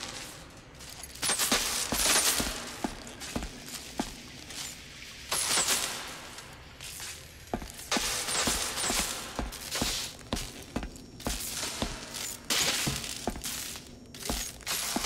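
Heels click on a metal floor in steady footsteps.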